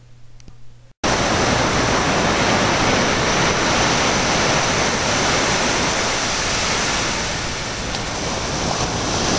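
Waves crash and wash onto a shore.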